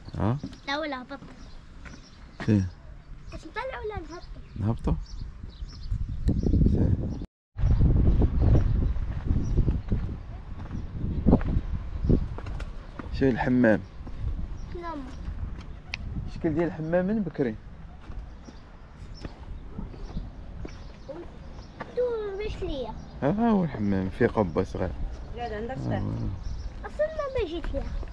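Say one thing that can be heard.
A young child talks with animation close by.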